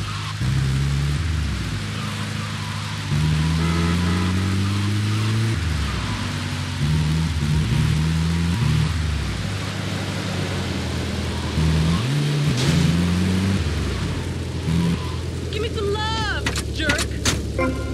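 An ambulance engine drones and revs as it drives.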